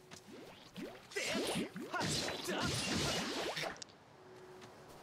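A sword clashes and swishes in a fight.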